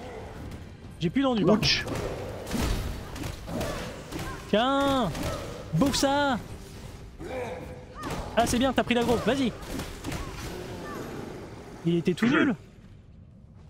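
A monster roars and growls loudly.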